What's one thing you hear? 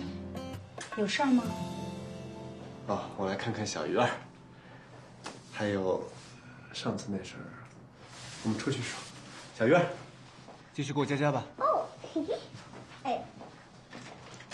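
A young man speaks gently and calmly up close.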